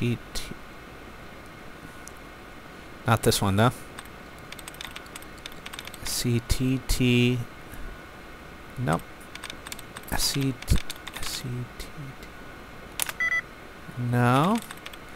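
A computer terminal chirps and beeps in short bursts.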